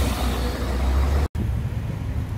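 City traffic hums along a street.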